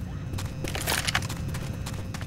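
A pump-action shotgun fires.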